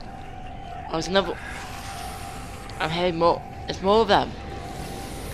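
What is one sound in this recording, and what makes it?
Creatures groan and moan loudly nearby.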